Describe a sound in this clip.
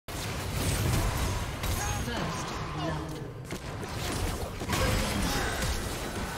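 Magic blasts and sword hits crackle and thump in a game battle.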